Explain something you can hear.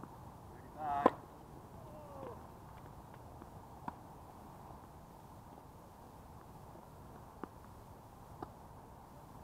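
A tennis racket hits a ball with a sharp pop outdoors.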